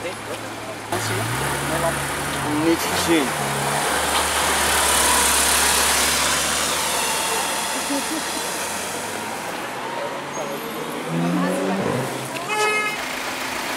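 A sports car engine rumbles and revs on a busy street.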